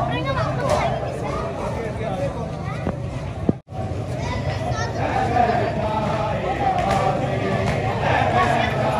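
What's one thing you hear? A large crowd of men murmurs and talks outdoors.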